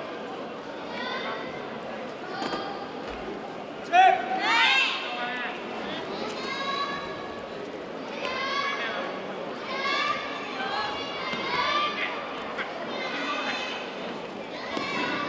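Young girls shout sharply and loudly in a large echoing hall.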